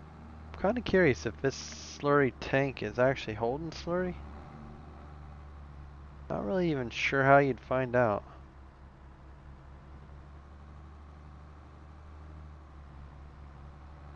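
A tractor engine hums steadily at low idle.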